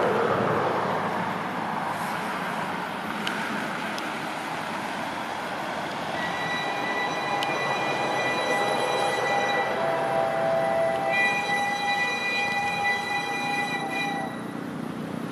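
A steam locomotive chugs and rumbles as it slowly approaches.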